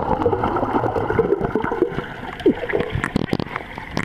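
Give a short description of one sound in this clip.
Air bubbles gurgle and rise underwater.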